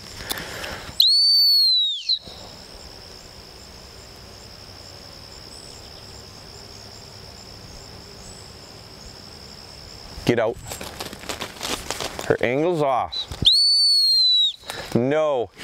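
A whistle blows with a shrill, falling note.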